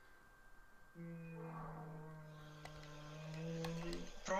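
A video game's music plays a steady, droning tone.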